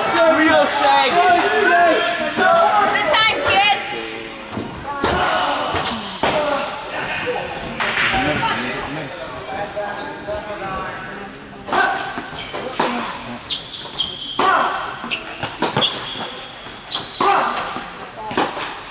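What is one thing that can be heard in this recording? Men and women chat nearby in an echoing indoor hall.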